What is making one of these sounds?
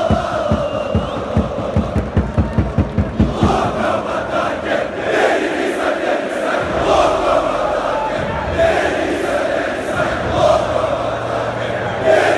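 A large crowd of fans chants and sings loudly in a big open stadium.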